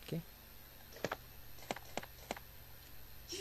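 Buttons click on a game controller.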